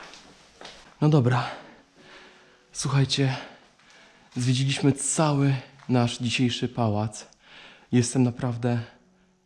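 A man speaks close to the microphone with animation.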